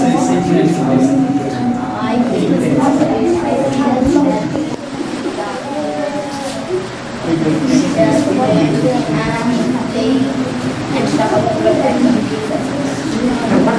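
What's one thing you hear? A boy answers in a soft voice.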